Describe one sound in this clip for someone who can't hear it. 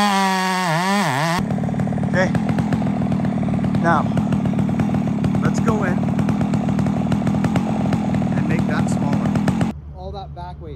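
A chainsaw roars while cutting into a tree trunk.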